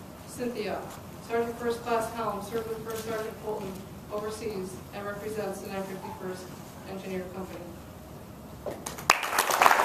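A middle-aged woman speaks calmly into a microphone in a large echoing hall.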